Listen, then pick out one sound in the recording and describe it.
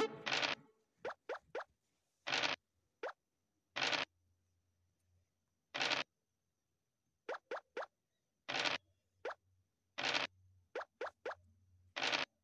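Game pieces click as they move.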